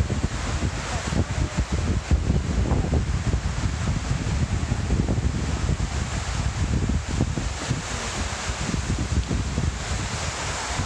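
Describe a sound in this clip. Water pours steadily down a wall into a pool with a loud rushing splash.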